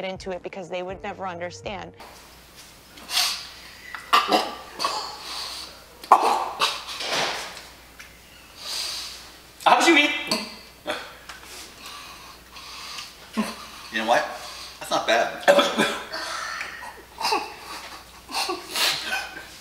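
A man coughs and splutters.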